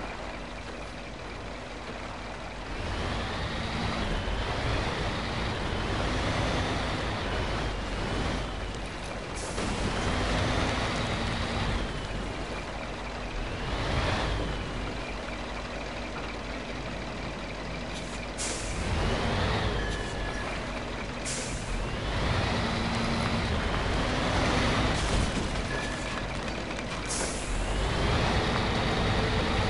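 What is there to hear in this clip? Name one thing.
A heavy truck engine rumbles and revs up and down.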